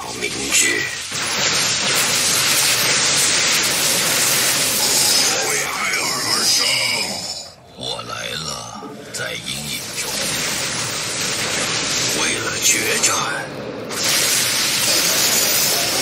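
Energy weapons zap and crackle in a busy battle.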